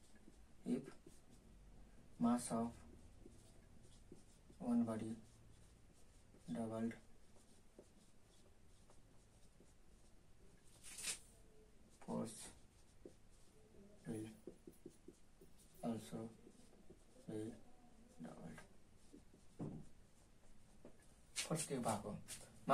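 A young man speaks calmly in short phrases, close by.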